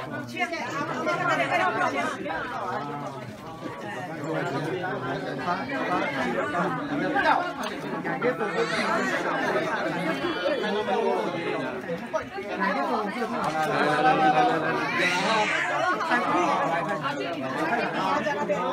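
A crowd of men and women chat and talk over one another outdoors, close by.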